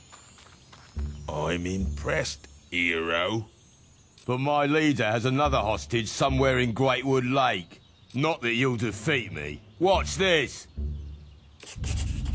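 A man speaks in a taunting voice.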